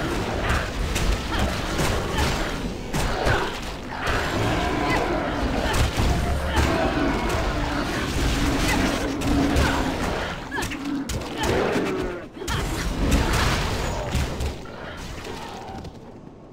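Weapons clash and spells burst in a fast, noisy fight.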